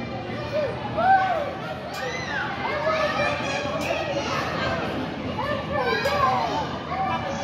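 Young children shout and squeal with excitement in a large echoing hall.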